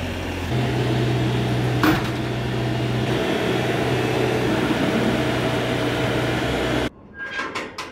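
A skid steer loader's engine rumbles steadily close by.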